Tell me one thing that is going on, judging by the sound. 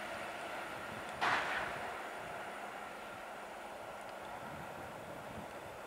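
An electric train approaches along the tracks with a low rumble.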